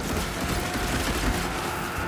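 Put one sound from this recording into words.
An electric zap crackles.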